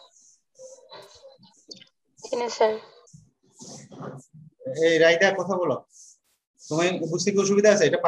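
A man speaks calmly into a microphone, explaining.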